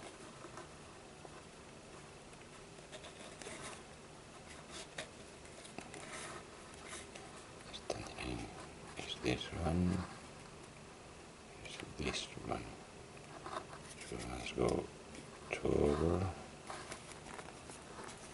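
Cord rustles and rubs softly as hands braid it.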